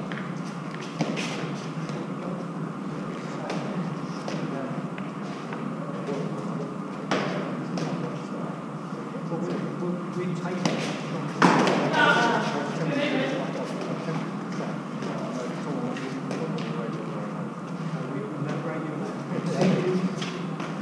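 A hard ball smacks off a gloved hand and rebounds off stone walls.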